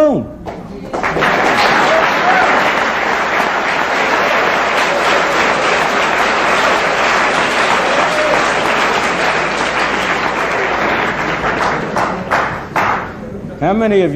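A large audience laughs loudly.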